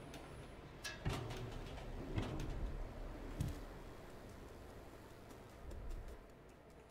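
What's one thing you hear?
Light footsteps thud and scrape as a small figure climbs and lands.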